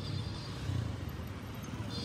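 A motorcycle engine passes close by.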